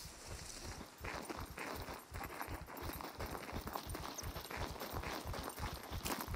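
Footsteps crunch steadily on dry ground and grass.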